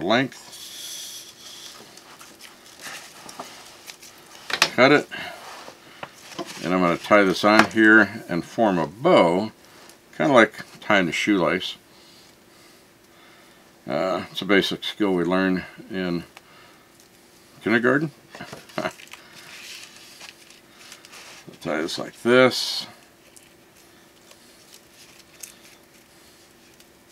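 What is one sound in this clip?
Plastic ribbon crinkles and rustles as it is tied.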